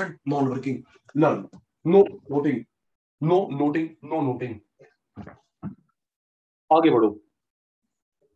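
A man speaks calmly into a clip-on microphone, close by.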